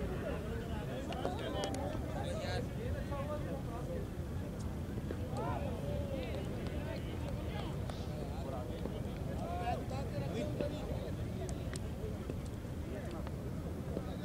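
Several men talk and call out at a distance outdoors.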